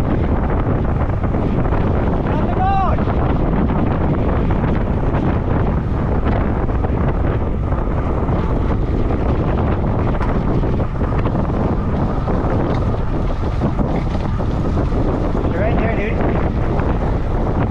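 Bicycle tyres hum on the pavement.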